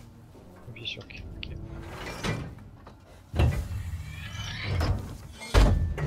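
A heavy metal lever clanks and scrapes as it is forced.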